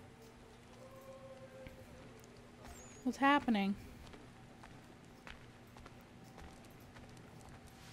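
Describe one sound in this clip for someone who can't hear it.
Footsteps tread on wet ground.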